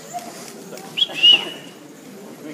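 A spectator in an audience whistles loudly.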